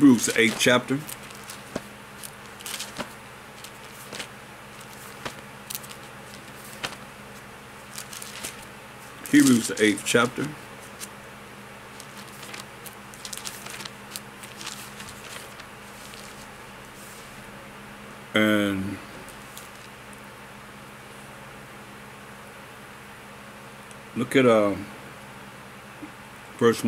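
An older man speaks calmly and closely into a microphone, in short bursts with long pauses.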